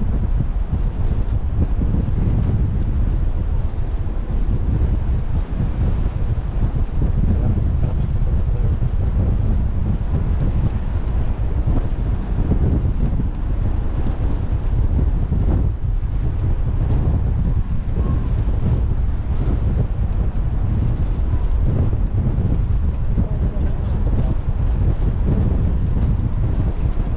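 Strong wind buffets loudly and steadily outdoors.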